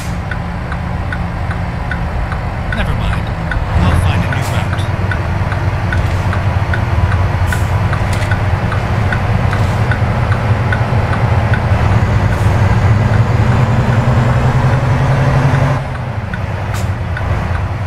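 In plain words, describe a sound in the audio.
A truck engine drones steadily, growing louder as it pulls, then easing off near the end.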